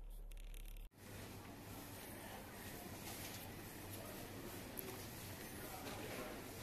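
A shopping trolley rolls over a hard floor.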